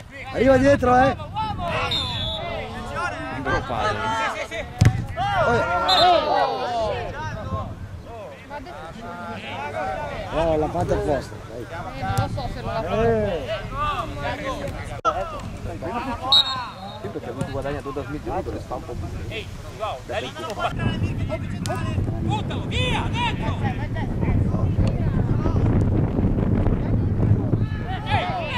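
Teenage boys shout to each other across an open field.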